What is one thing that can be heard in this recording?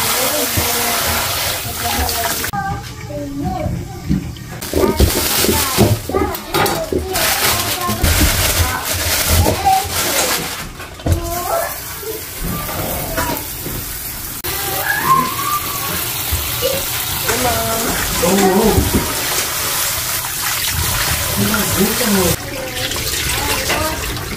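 Hands rub and swish produce in water.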